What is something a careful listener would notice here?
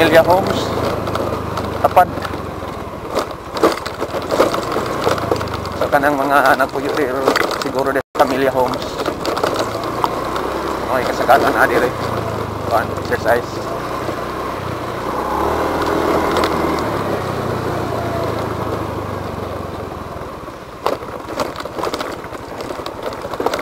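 Tyres crunch and rattle over a rough gravel track.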